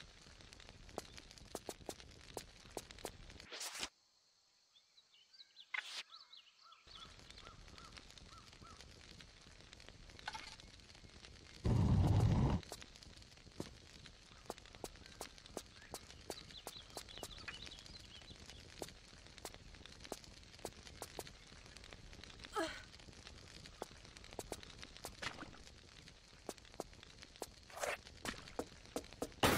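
Quick footsteps patter on a hard stone floor in a dim, echoing space.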